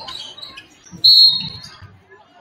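A referee blows a sharp whistle once.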